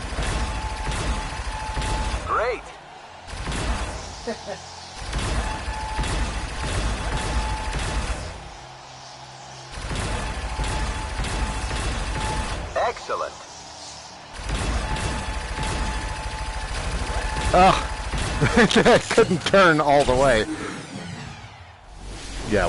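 Laser guns fire in rapid electronic bursts.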